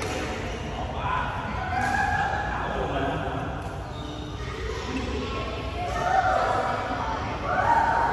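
Young men talk and call out across an echoing hall.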